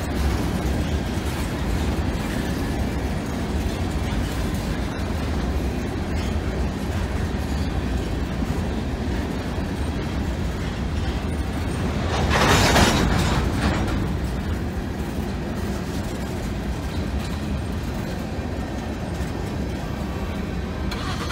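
A railway crossing bell rings steadily.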